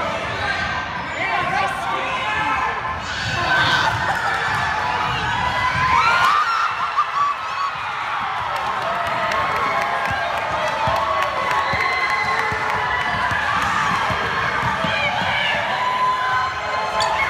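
A crowd of children and adults cheers and shouts in a large echoing gym.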